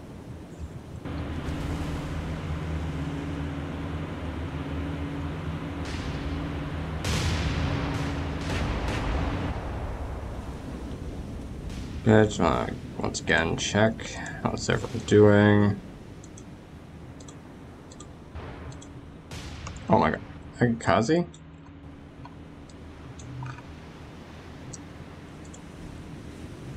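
Waves wash and splash against a ship's hull.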